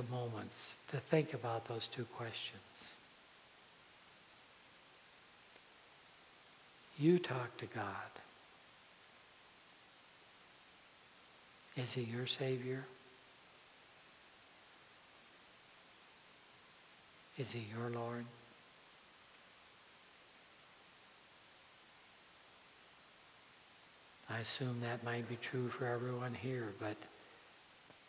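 A man speaks calmly into a microphone in short phrases with long pauses, in a large echoing hall.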